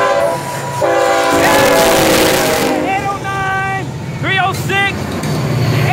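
A diesel locomotive roars loudly as it passes close by.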